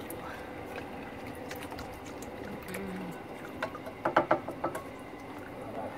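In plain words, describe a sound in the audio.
Oil drips and trickles into a plastic pan.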